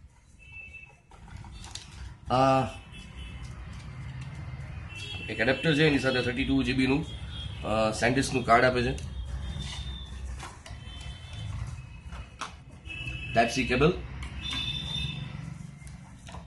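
Cardboard packaging rustles and scrapes as a box is opened.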